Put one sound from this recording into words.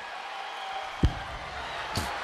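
A body thuds onto a wrestling mat.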